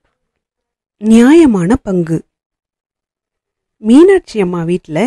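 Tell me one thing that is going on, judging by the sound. A woman speaks expressively, close to the microphone.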